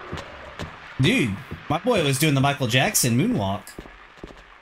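A young man speaks loudly and with animation into a microphone.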